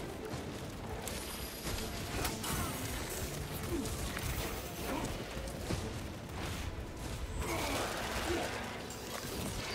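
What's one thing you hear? Blades slash and squelch through flesh.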